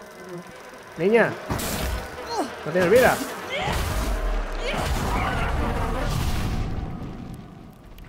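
A magical burst crackles and whooshes loudly.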